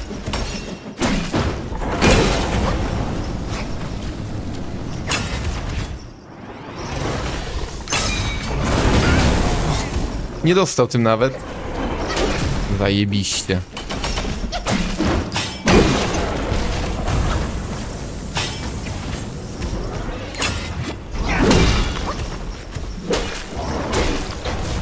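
Weapons clash and strike with sharp impacts.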